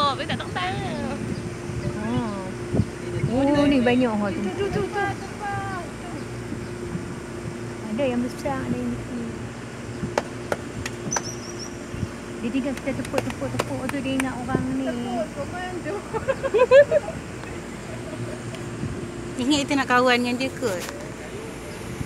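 A man and a woman talk calmly nearby.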